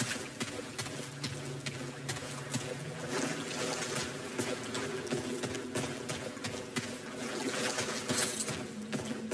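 Footsteps tread steadily on a hard, echoing floor.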